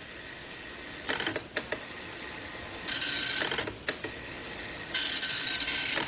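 A printer buzzes as its head moves across the paper.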